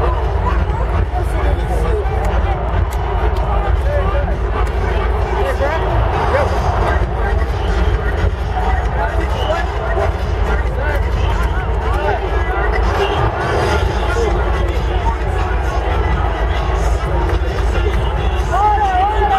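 Pom-poms rustle as cheerleaders shake them.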